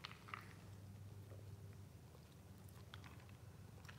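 A man slurps a drink through a straw.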